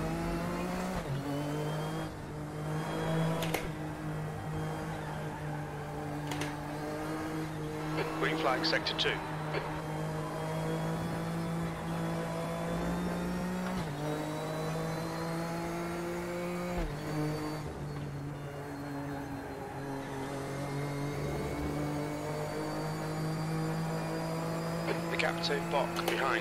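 A racing car engine drones steadily, its pitch shifting as gears change.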